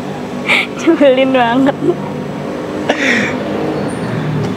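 A young man and a young woman laugh together nearby.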